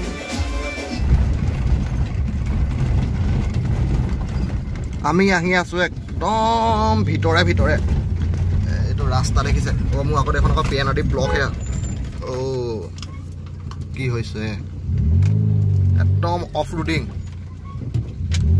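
A car engine rumbles steadily while driving slowly on a rough road.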